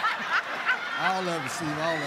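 An elderly man laughs and exclaims.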